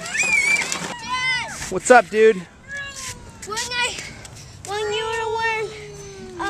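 A young boy talks loudly and excitedly nearby.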